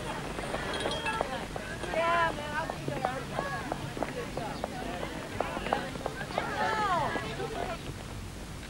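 Young people chatter and call out.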